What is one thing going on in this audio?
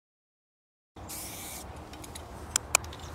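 A spray can hisses in short bursts outdoors.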